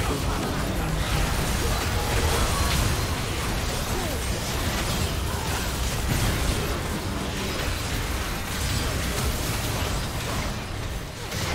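Magic blasts and hits burst in quick succession.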